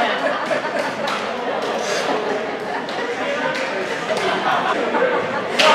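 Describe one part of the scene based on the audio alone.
Several people talk in an echoing ice rink.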